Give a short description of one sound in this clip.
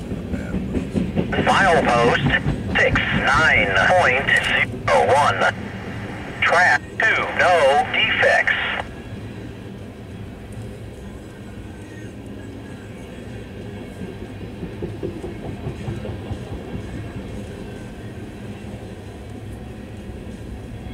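A freight train rumbles past on the tracks.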